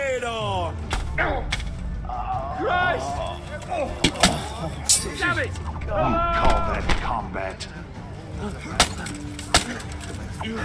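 Metal weapons clash and strike with sharp blows.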